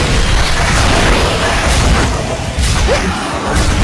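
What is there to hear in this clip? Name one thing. Icy blasts burst and shatter.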